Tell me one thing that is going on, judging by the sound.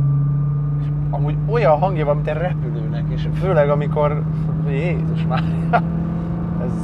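A young man talks with animation inside a car, close by.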